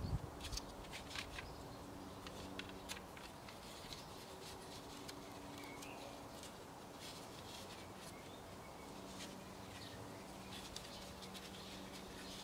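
Garden twine rustles as it is tied around canes.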